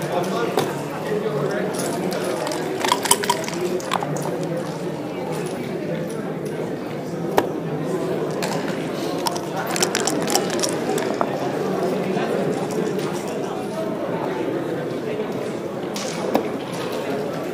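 Game pieces click as they are set down on a board.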